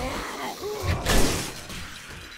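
A heavy weapon thuds into a body.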